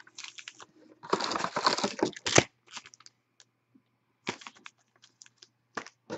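Card packs tap softly onto a table.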